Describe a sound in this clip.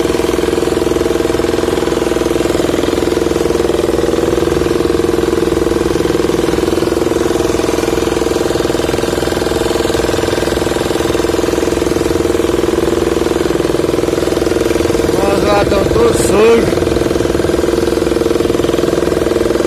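Waves splash against the side of a boat.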